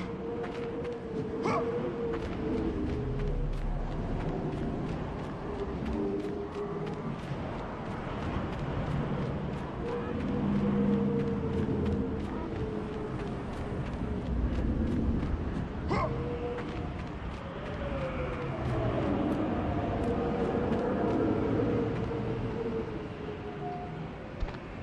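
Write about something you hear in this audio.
Strong wind howls and gusts in a sandstorm.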